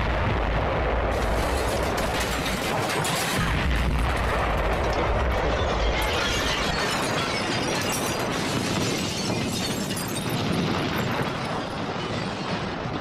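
Explosions roar and rumble loudly.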